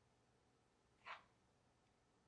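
A phone is set down on a notebook with a soft tap.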